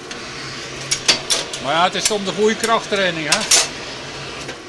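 Metal tongs clink against the forge.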